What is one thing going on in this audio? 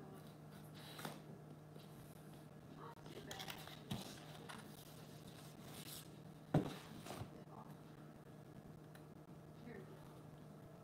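Cardboard pieces rustle and tap as they are handled.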